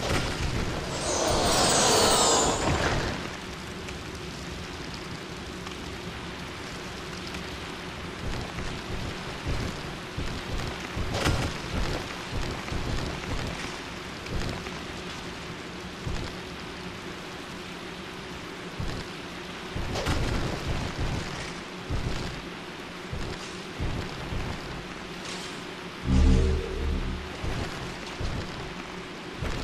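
Armoured footsteps thud and clank on wooden planks.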